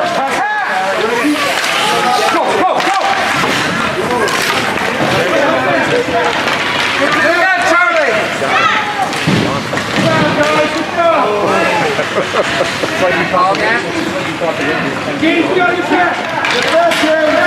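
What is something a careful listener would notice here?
A crowd of children and adults shouts and cheers in a large echoing rink.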